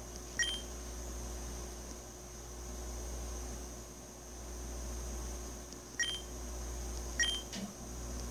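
A short electronic chime beeps a few times.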